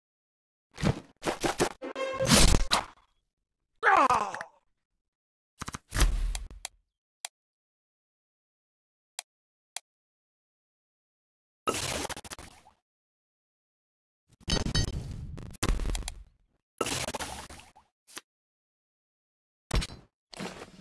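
Game sound effects whoosh and chime as cards are played.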